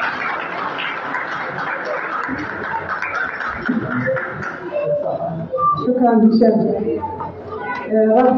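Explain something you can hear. A crowd of people chatters loudly in an echoing room.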